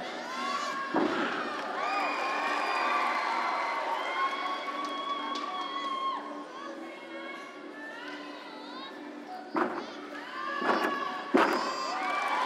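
Feet thud hard onto a sprung floor on landing.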